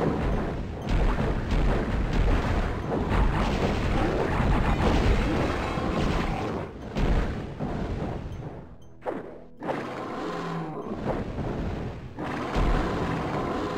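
A monster roars and growls.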